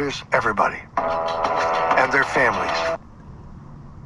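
A small radio plays music and singing through its speaker.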